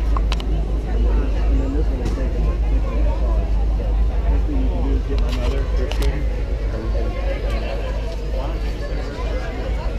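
A crowd of men, women and children chatters nearby outdoors.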